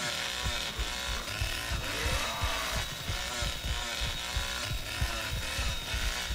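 A chainsaw revs and roars.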